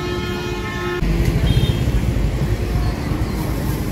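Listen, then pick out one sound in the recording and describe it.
A motorbike engine hums nearby.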